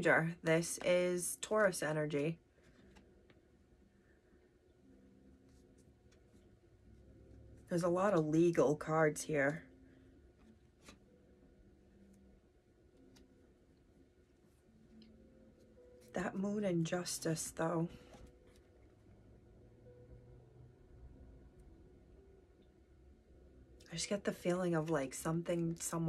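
A woman speaks calmly and close by in short bursts, with pauses between.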